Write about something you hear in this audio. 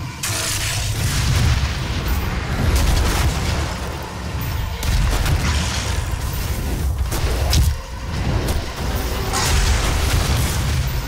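A heavy gun fires in loud, booming blasts.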